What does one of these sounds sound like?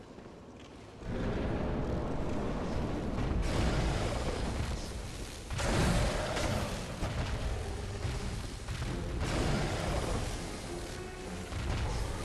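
Heavy blows and roars ring out in a video game fight.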